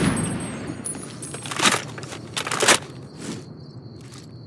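Metal parts click and clack as a weapon is reloaded.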